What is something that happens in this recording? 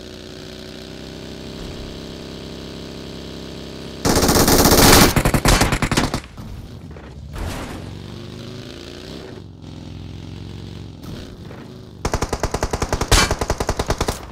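A buggy engine roars steadily as the vehicle drives over rough ground.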